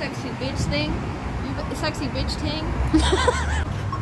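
A second young woman laughs close by.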